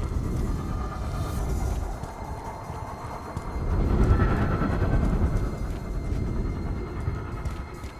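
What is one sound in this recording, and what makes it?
Heavy footsteps run on hard ground.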